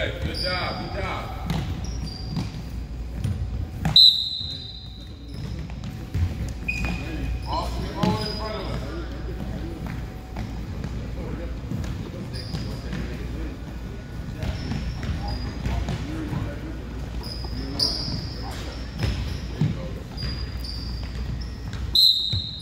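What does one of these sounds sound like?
Basketballs bounce on a wooden gym floor in a quick, uneven patter.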